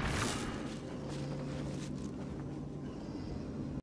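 A low magical hum drones steadily.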